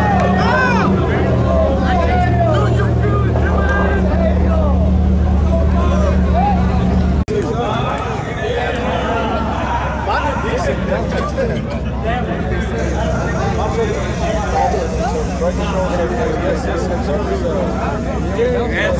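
An engine roars loudly and steadily.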